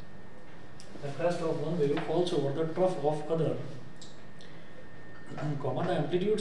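A man speaks calmly and clearly, as if explaining to a class.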